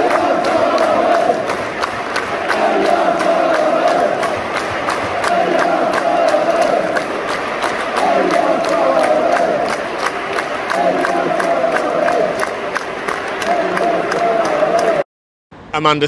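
Fans clap in a steady rhythm.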